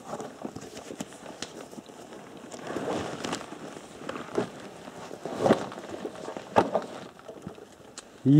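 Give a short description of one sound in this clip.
Fabric of a backpack rustles and scrapes close by.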